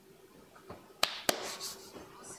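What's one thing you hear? A hand knocks against a wooden block on a table.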